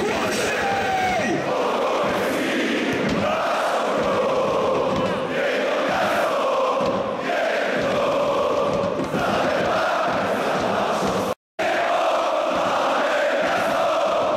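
A large stadium crowd sings a chant loudly in unison.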